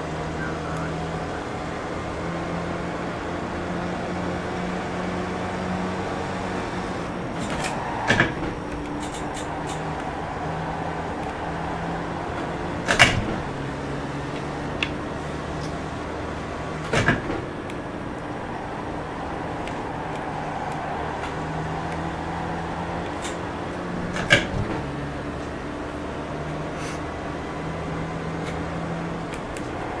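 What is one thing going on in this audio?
A racing car engine drones, rising and falling in pitch as it revs.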